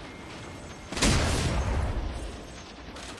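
A magical blast whooshes and booms.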